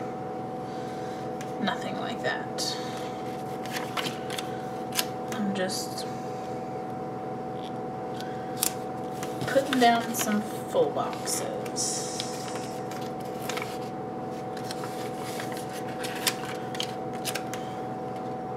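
Paper stickers rustle and crinkle as they are peeled and handled.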